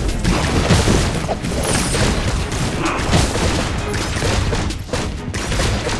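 Fiery explosions burst and crackle.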